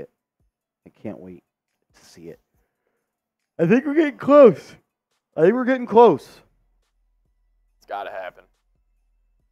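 A young man speaks with animation into a close microphone, in short bursts.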